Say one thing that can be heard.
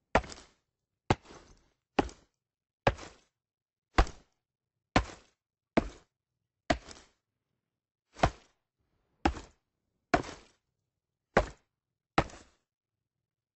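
An axe chops into a tree trunk with sharp, regular thuds.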